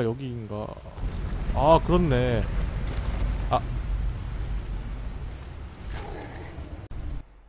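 Water rushes and roars loudly.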